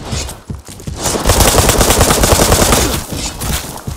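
A large creature roars loudly up close.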